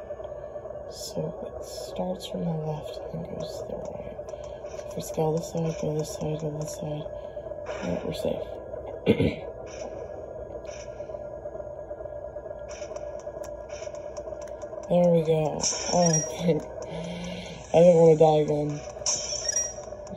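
Short game sound effects blip and chime through a small speaker.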